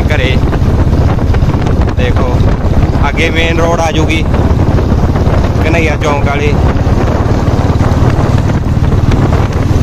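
A motorcycle engine hums close ahead.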